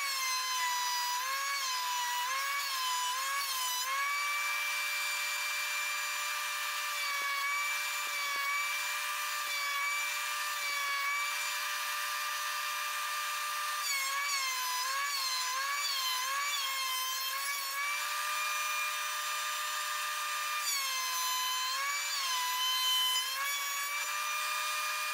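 An electric planer whines steadily.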